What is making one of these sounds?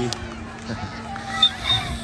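A teenage boy laughs close by.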